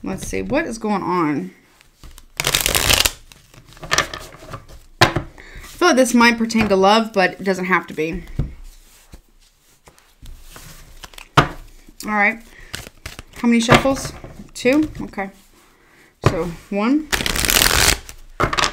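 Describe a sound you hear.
Playing cards riffle and flutter as they are shuffled.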